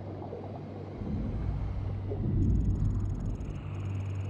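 A low engine hum drones and grows louder.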